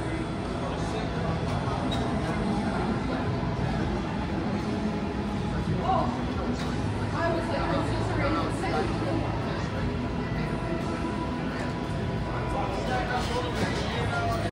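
Many voices murmur in a large, echoing hall.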